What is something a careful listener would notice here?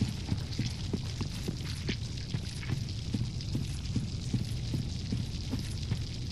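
Armoured footsteps run quickly over the ground, clinking with each stride.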